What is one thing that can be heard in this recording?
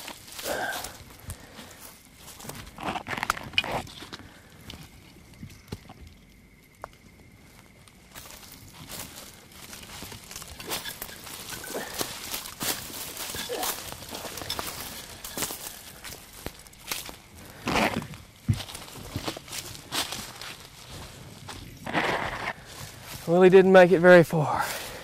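Dry branches scrape and rustle as a person pushes through brush.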